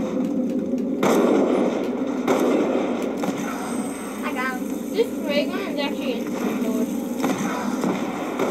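Gunshots from a video game play through loudspeakers.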